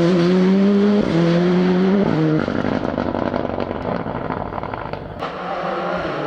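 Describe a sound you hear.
A rally car engine revs hard and shifts gears as the car speeds away.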